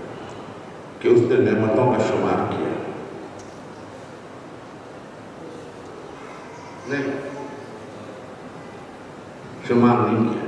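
An elderly man speaks slowly and deliberately into a microphone, heard through a loudspeaker in a reverberant hall.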